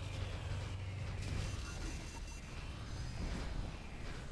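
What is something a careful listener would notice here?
Mechanical weapons fire in rapid bursts.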